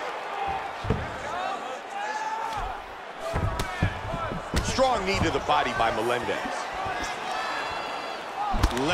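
Punches thud sharply against bodies.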